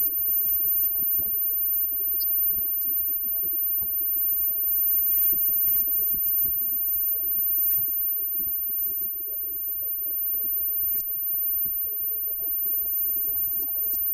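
A band plays loud live rock music in an echoing room.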